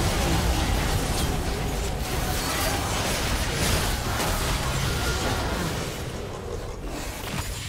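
Magic spells and weapon strikes crackle and clash in a fast battle.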